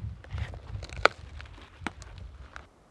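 Twigs snap underfoot.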